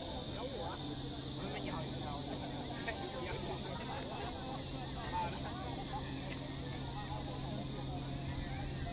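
A crowd of people chatters outdoors in the distance.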